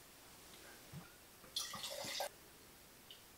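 Wine glugs as it is poured into a glass.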